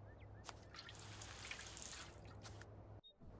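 Water splashes from a watering can onto soil.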